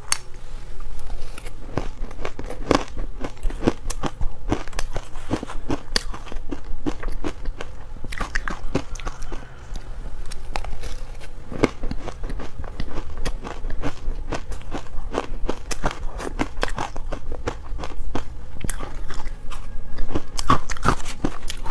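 A young woman crunches icy food loudly and close to a microphone.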